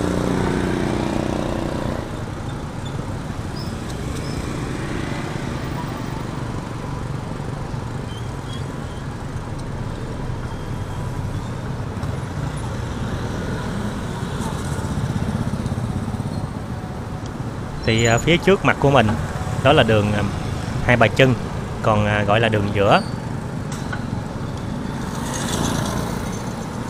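Motorbike engines hum and buzz steadily in street traffic.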